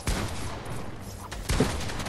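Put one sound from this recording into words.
A gun fires a sharp shot.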